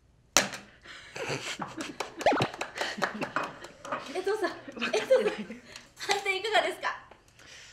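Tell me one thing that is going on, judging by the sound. Young women laugh loudly.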